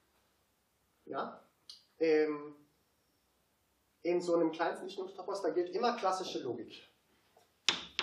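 A young man lectures calmly in a room with a slight echo.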